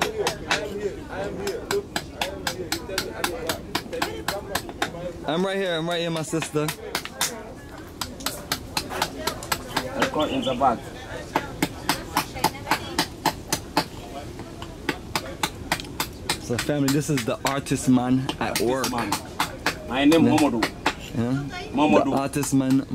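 A small hatchet chops into wood with quick, steady blows.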